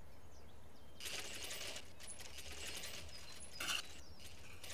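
A heavy mechanism grinds and clicks as tiles slide and a dial turns.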